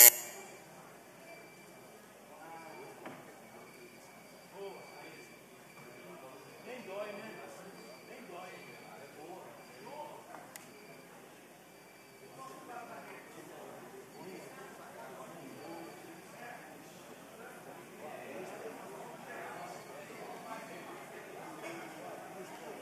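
Men talk quietly among themselves in a large hall.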